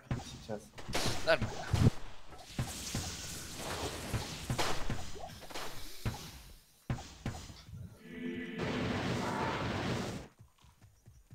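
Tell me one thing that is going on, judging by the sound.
Icy magic spells crackle and burst in quick succession.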